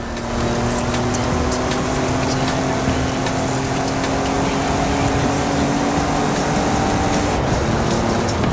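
A truck engine roars steadily at high speed.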